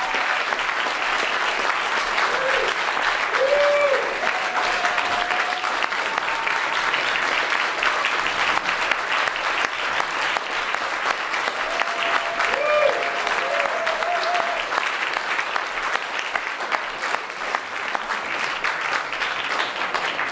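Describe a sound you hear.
Two acoustic guitars strum together.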